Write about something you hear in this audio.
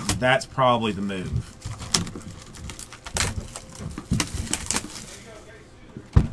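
Cardboard boxes knock and scrape against each other as they are handled.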